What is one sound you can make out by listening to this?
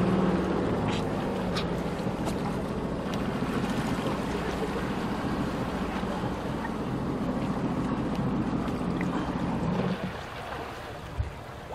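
Water churns and splashes as a person is pulled through it.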